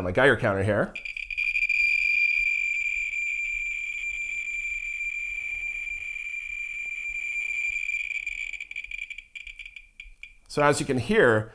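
A handheld meter gives off a steady high tone.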